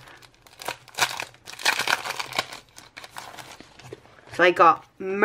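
A plastic sleeve crinkles and rustles close by.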